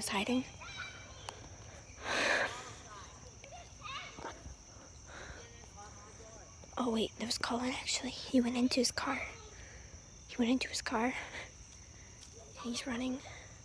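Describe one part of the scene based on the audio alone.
A young woman talks close to the microphone, with animation.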